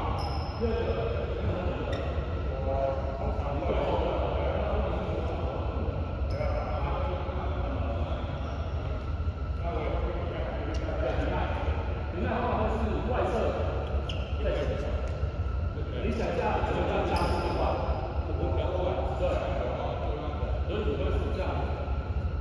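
Young men talk casually across an echoing hall.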